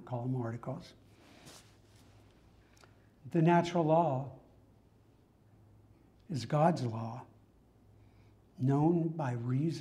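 A middle-aged man speaks with animation in short bursts.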